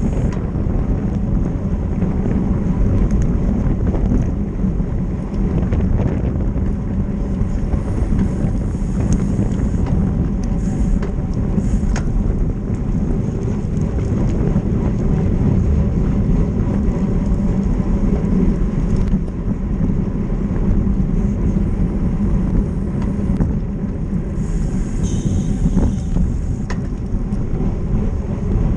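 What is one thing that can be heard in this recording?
Wind rushes loudly past as bicycles ride along a road.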